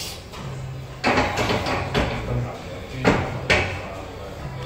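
Metal weights clank sharply during lifts.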